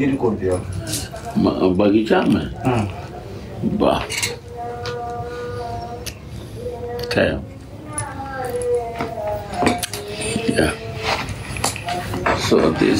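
An elderly man chants slowly in a calm, held voice.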